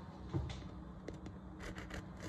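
A serrated knife saws softly through a loaf of cake.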